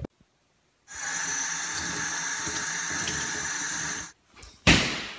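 Water runs from a tap and splashes.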